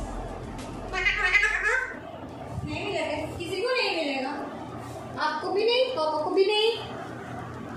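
A parrot chatters and squawks in short bursts, close by.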